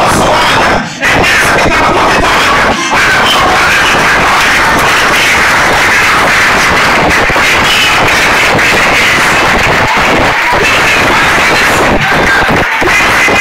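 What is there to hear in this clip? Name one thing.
A crowd cheers and calls out.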